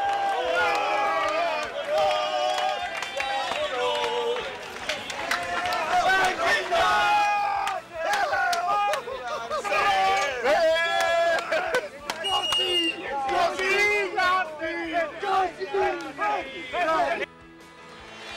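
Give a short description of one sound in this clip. A crowd of men shout and chant excitedly close by.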